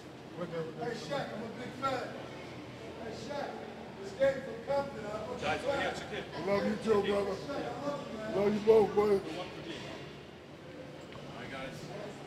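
Men talk and laugh casually nearby.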